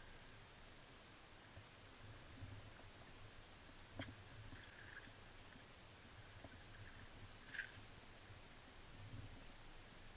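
Water sloshes and splashes around a man wading waist-deep in a river.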